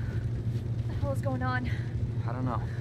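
A young woman asks a question in a worried voice.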